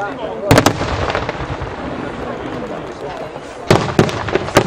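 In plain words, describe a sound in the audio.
Crackling fireworks fizz and pop overhead.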